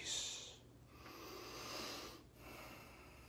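A man blows out a sharp, loud breath close by.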